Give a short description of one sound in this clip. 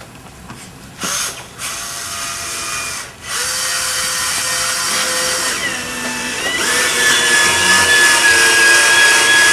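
A cordless drill whirs, driving screws into wood.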